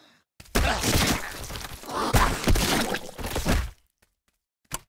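Weapons clash and thud in a fast fight.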